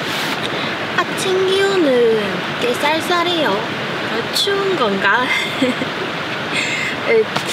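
A young woman speaks calmly and cheerfully close by.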